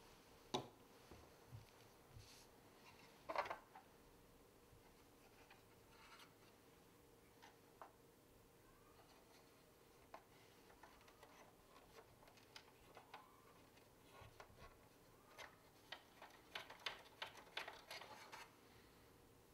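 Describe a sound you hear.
Plastic parts click and rattle softly as hands handle a toy.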